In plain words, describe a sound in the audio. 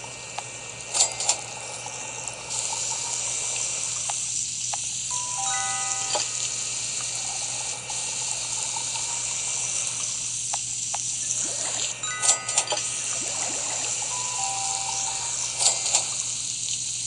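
Bright game chimes and dings sound as dishes are served.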